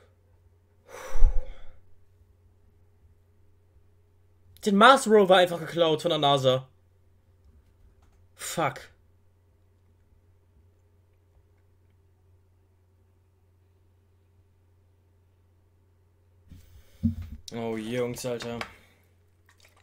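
A young man speaks calmly and close to a microphone, in short bursts.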